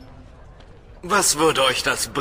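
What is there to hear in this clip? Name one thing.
A man speaks loudly and clearly.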